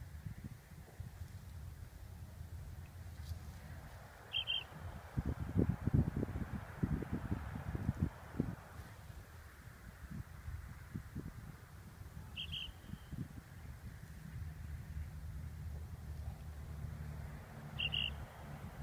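Wind buffets the microphone in open country.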